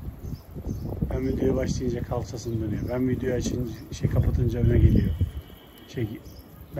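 Pigeons coo nearby.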